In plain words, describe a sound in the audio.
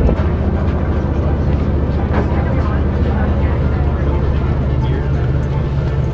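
Footsteps clank on a metal gangway.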